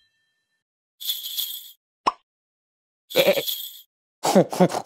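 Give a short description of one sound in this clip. Small bells jingle on a harness.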